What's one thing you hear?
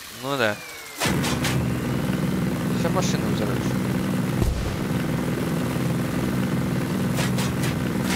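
A car engine hums as the car drives closer.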